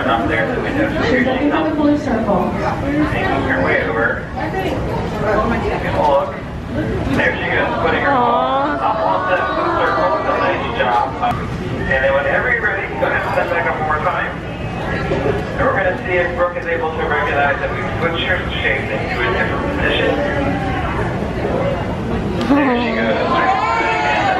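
A crowd chatters and calls out loudly in an echoing hall.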